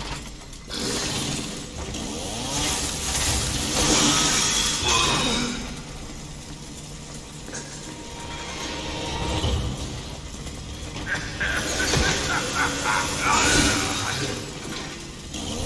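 A chainsaw roars and revs loudly.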